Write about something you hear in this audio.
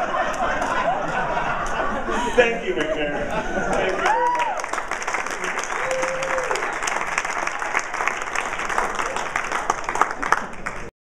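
An audience laughs and chatters.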